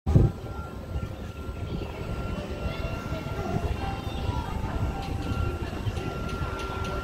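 A crowd of adults chatters faintly in the distance.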